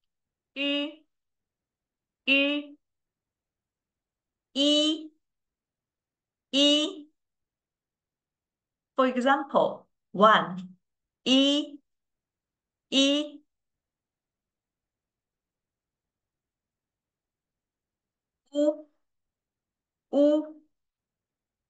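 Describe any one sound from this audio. A young woman speaks short words slowly and clearly into a microphone, pausing between them.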